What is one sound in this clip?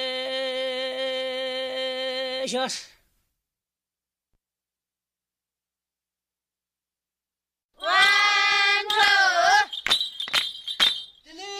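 Women sing with long held notes.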